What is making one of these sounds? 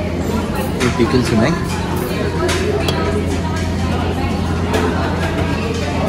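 Ceramic lids clink against small pots.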